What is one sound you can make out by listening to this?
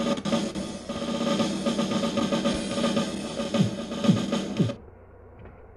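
Upbeat electronic game music plays through a small loudspeaker, then cuts off.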